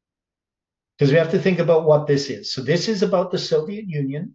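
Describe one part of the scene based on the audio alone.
An older man talks calmly and close to a microphone.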